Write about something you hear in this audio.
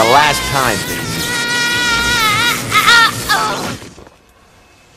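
A young woman screams in pain.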